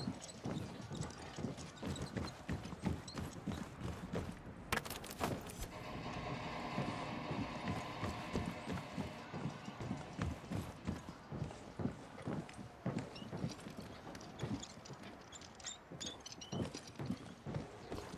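Footsteps thud steadily on a metal deck.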